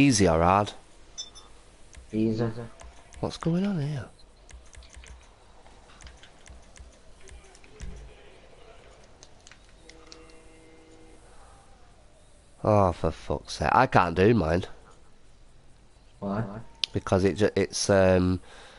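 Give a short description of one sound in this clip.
A young man talks casually and closely into a microphone.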